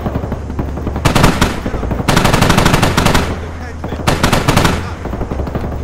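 A heavy machine gun fires rapid, loud bursts.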